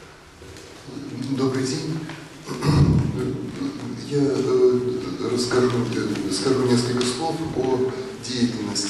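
An elderly man speaks calmly into a microphone.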